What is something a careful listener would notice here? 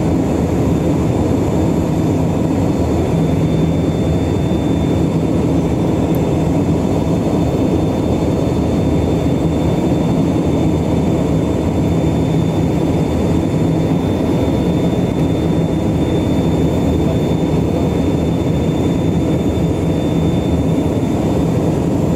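An aircraft engine drones steadily and loudly inside the cabin.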